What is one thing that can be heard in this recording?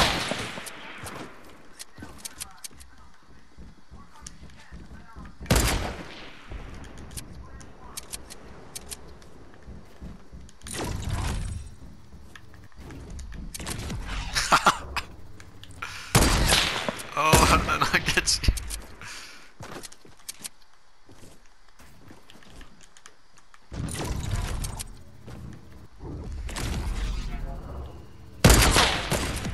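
Wooden walls and floors snap into place with quick, hollow knocks.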